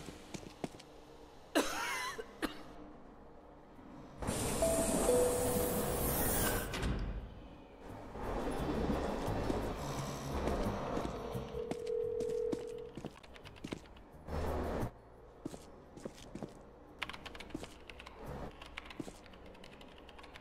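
Metal subway doors slide open with a thud.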